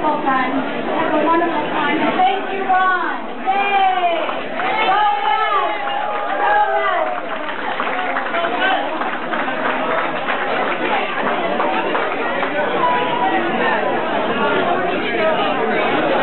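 A crowd chatters and cheers in a noisy room.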